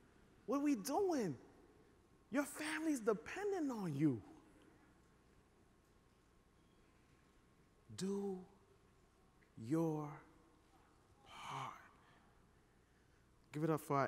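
A man speaks with animation through a microphone in a large hall, pausing between phrases.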